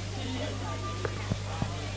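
A stick knocks sharply on the floor a few times.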